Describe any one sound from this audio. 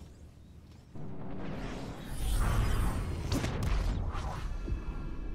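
A spaceship engine roars as it flies past.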